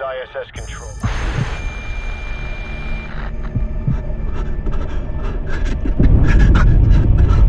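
A distant explosion bursts with a deep rumble.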